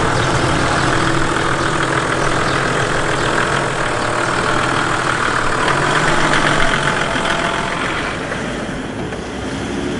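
A vehicle engine idles and runs steadily.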